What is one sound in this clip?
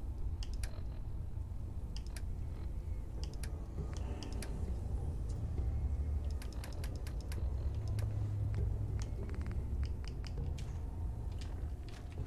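Soft menu clicks tick quickly one after another.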